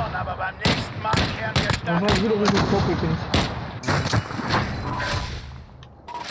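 Rapid gunshots crack close by.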